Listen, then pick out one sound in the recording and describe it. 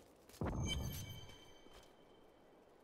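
A magic spell bursts with a deep whoosh and bright ringing chimes that fade away.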